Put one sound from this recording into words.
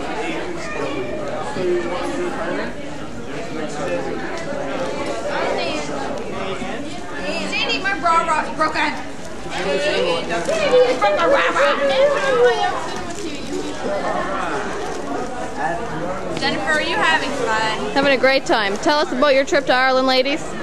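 A crowd of young people chatters nearby.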